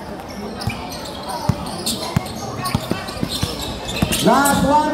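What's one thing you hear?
A basketball bounces with dull thumps on a hard court.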